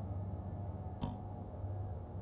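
A soft menu click sounds once.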